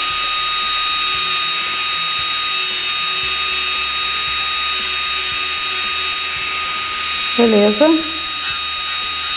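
An electric nail drill whirs with a steady high whine.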